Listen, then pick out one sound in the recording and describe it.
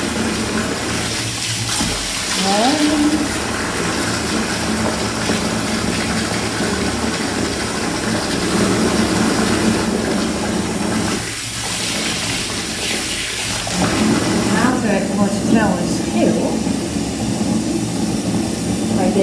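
Water runs from a tap and splashes into a filling bath.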